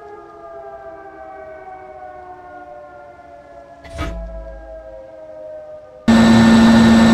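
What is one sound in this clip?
A tank engine hums and slowly drops in pitch.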